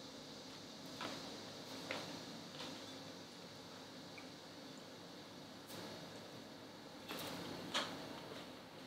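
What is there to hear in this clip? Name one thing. A young woman chews and crunches grapes close by.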